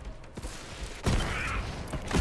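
An electric shock crackles and zaps.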